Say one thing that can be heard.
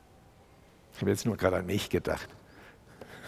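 A middle-aged man speaks briefly into a microphone.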